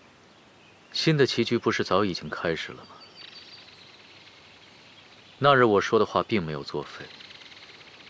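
A man speaks in a low, measured voice.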